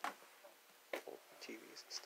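A hand knocks against hard plastic equipment.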